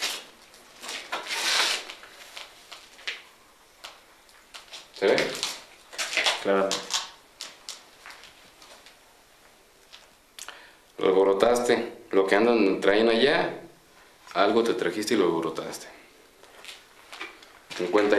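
A young man speaks calmly close by, with pauses.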